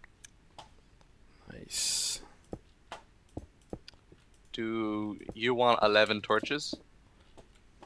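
Stone blocks are set down with short, soft knocks.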